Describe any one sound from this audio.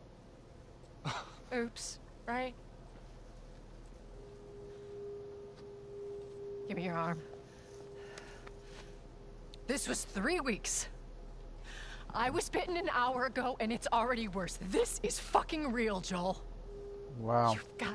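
A woman speaks in a strained, upset voice.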